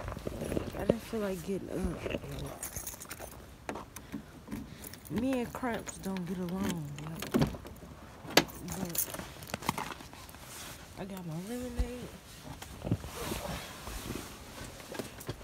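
Clothing rustles and bumps against the microphone.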